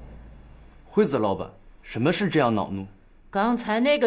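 A man asks a question calmly.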